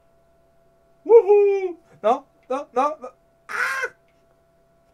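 A young man speaks briefly with animation into a close microphone.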